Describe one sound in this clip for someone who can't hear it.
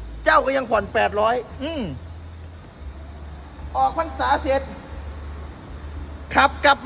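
A young man speaks loudly and with animation close by.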